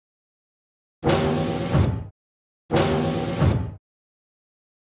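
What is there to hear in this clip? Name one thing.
A heavy metal door opens.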